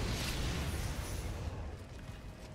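A burst of sparks crackles and bursts loudly.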